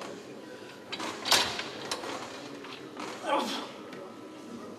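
Men shout loudly in encouragement.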